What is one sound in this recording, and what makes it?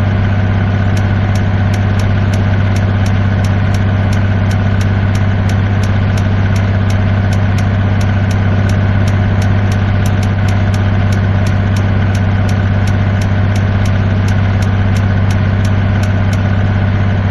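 A turn signal ticks in an even rhythm.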